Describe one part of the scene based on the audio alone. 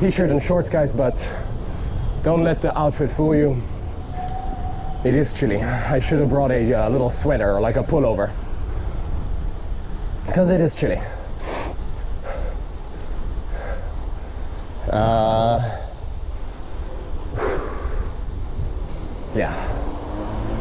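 Bicycle tyres hum on a smooth paved path.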